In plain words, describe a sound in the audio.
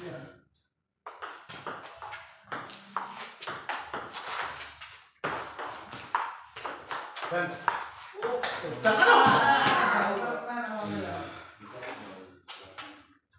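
A table tennis ball clicks back and forth on paddles and a table.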